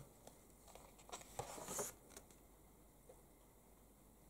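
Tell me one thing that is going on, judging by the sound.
A magazine page is turned with a soft paper rustle.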